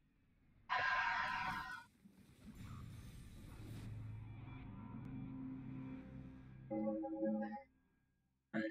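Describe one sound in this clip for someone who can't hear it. Video game music plays from television speakers.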